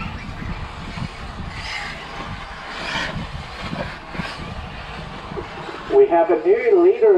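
Small electric model cars whine as they race past.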